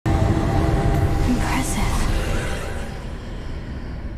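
A low magical rumble swells and then fades away.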